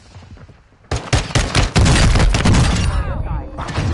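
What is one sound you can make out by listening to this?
Pistol shots crack in quick bursts.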